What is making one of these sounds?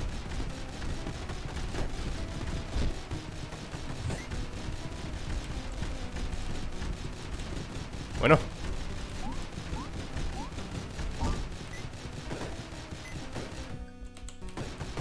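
Video game gunshots pop rapidly.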